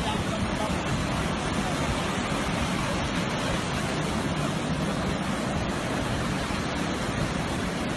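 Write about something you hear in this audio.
Waves crash and wash onto the shore.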